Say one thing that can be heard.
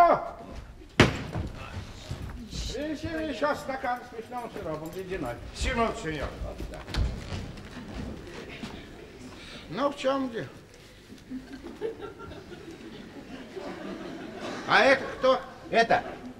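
A middle-aged man speaks with animation, heard in a stage hall.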